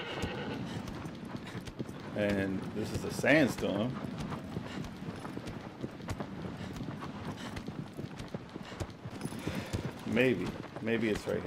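Hooves thud as a horse gallops over sand.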